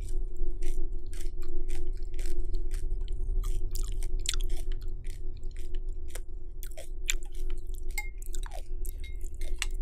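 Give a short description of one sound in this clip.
A woman crunches food close to a microphone.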